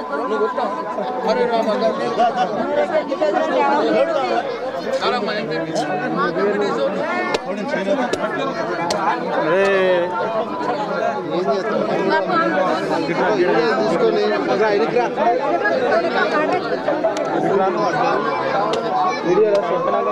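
A crowd of men talk over one another close by.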